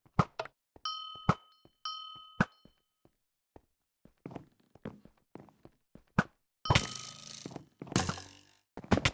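Short game clicks and thuds sound in quick bursts.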